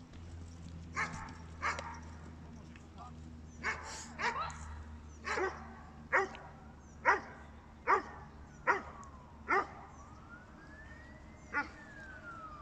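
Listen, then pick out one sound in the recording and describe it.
A dog barks loudly and repeatedly.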